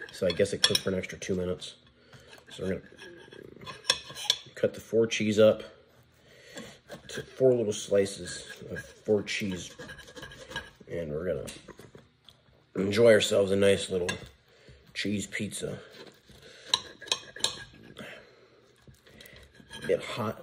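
A knife scrapes and taps on a plate.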